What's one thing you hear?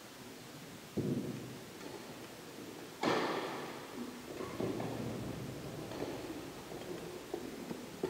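A badminton racket sharply strikes a shuttlecock in an echoing hall.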